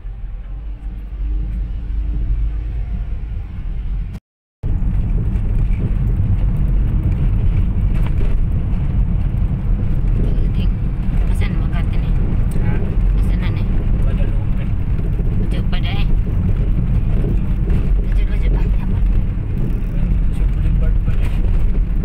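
Tyres and engine rumble low inside a moving car.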